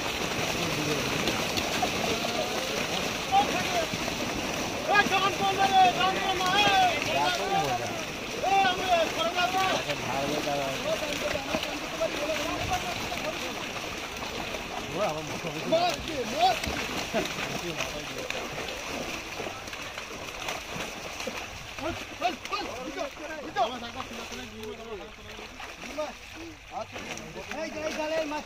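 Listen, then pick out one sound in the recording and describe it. Fish splash and thrash in shallow water.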